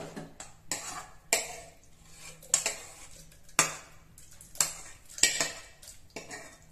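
Cooked vegetables drop with soft plops into a metal pot.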